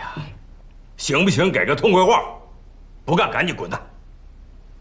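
An older man speaks firmly and sharply, close by.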